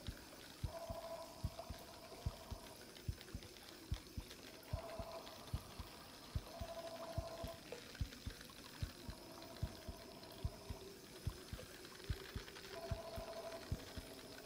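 A fishing reel clicks steadily as line is wound in.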